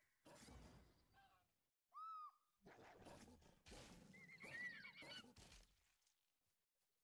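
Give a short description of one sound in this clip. A wolf snarls and growls.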